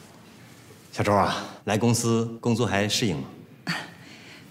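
A man asks a question calmly.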